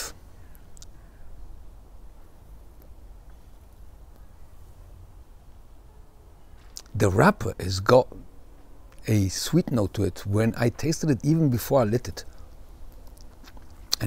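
A man puffs on a cigar.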